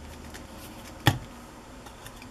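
A glue bottle is set down on a table with a knock.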